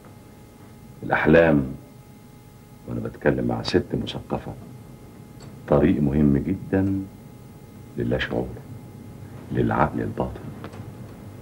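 A middle-aged man speaks firmly in short phrases, close by.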